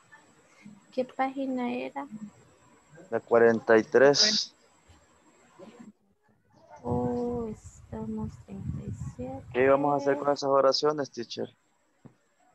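A young woman speaks through an online call.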